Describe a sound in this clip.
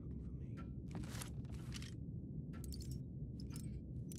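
A metal lock clicks and rattles as it is picked.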